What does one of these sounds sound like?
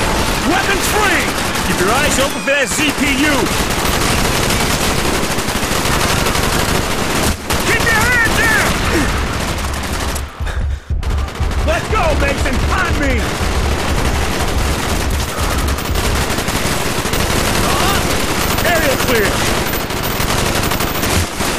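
Rapid rifle gunfire rattles loudly and repeatedly.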